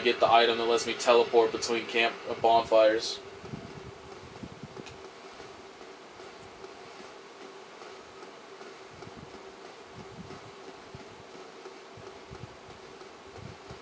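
Armoured footsteps clatter on stone while running.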